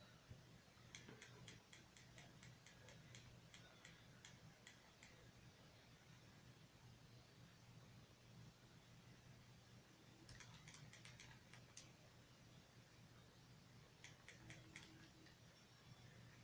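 Quick light clicking effects rattle in a fast run.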